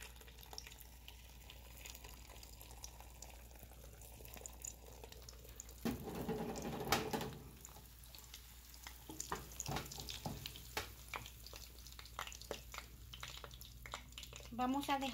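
Beaten egg sizzles and crackles in a hot pan.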